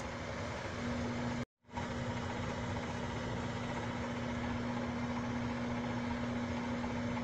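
A microwave oven hums steadily.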